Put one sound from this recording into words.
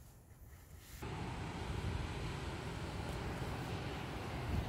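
Wind rushes loudly past an open car window.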